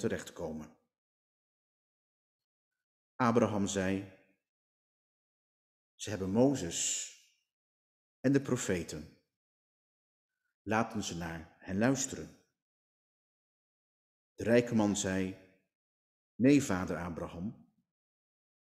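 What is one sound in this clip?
A man reads aloud slowly into a microphone, with long pauses between phrases.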